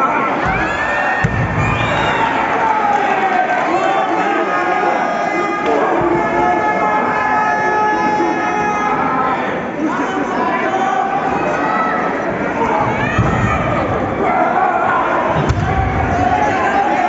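Wrestlers' bodies slam onto a wrestling ring canvas with heavy thuds.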